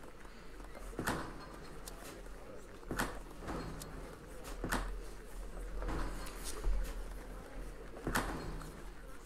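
Short interface clicks sound now and then.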